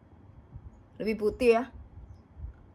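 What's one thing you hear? A woman speaks briefly with animation, close by.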